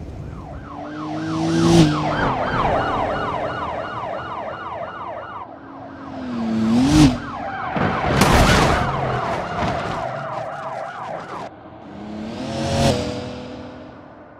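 Car engines roar as cars speed past.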